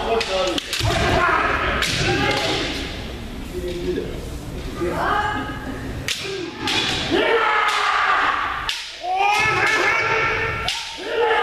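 Fighters shout loudly and sharply in a large echoing hall.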